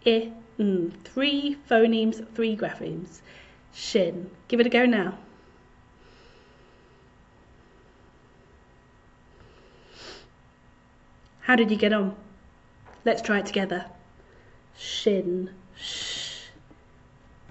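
A young woman speaks clearly and calmly into a close microphone, pausing now and then.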